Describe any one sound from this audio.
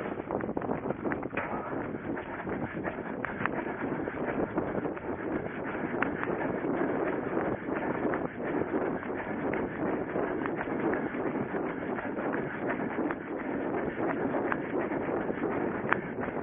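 Footsteps thud quickly on grass as a runner jogs.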